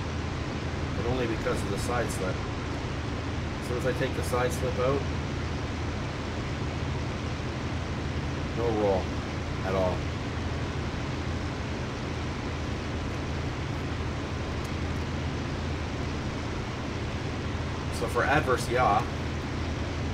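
A man talks calmly into a close microphone in short bursts.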